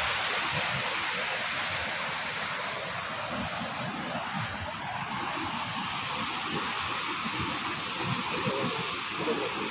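A fast river rushes and roars nearby.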